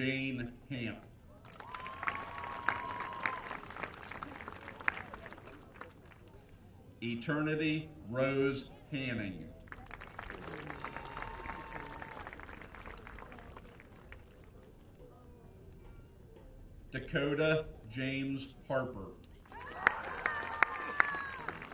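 A crowd cheers and claps outdoors.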